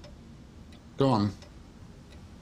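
A middle-aged man speaks in a low, subdued voice nearby.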